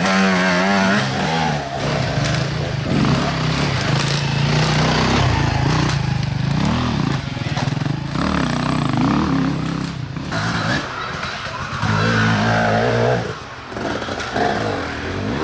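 A dirt bike engine revs loudly and roars nearby, rising and falling in pitch.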